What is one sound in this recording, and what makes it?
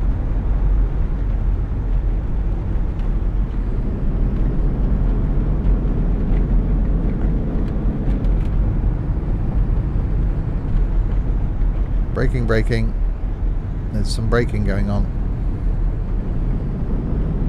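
A bus engine rumbles steadily.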